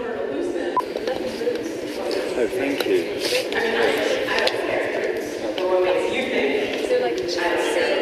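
A woman answers nearby.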